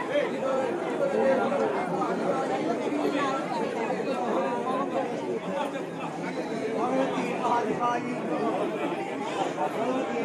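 A large crowd of men and women chatters loudly all around.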